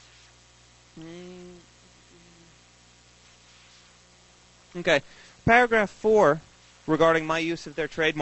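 A man speaks into a microphone, amplified through loudspeakers in a large room.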